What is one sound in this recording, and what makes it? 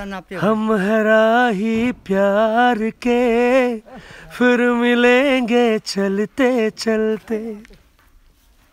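An elderly woman sings close by, in a steady, wavering voice.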